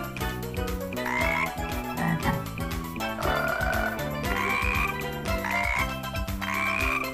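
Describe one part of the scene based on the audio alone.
Cartoon frogs croak in short, bright bursts.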